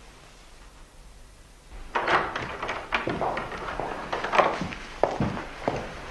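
A door handle clicks and a wooden door swings open.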